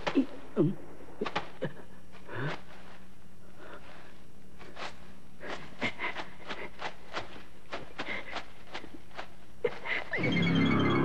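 Lumps of coal clatter and scrape under hands.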